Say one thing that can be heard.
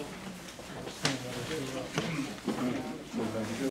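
A man speaks over a loudspeaker, his voice echoing.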